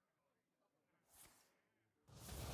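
A card game plays a short whooshing sound effect.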